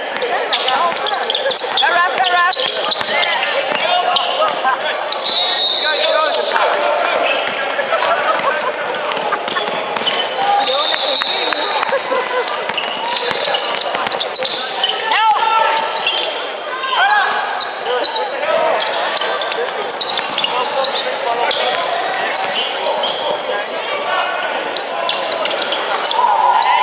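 Spectators chatter and call out throughout.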